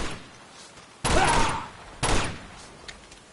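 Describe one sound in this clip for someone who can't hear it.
Gunshots fire loudly.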